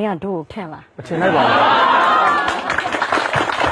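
A crowd laughs and cheers.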